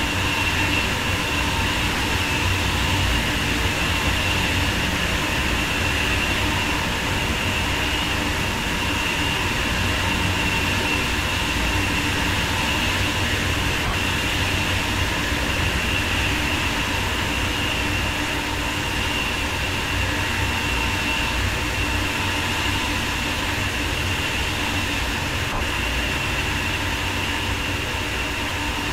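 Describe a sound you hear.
An electric train hums and rumbles steadily along the tracks at speed.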